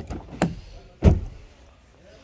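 A car door handle clicks as it is pulled.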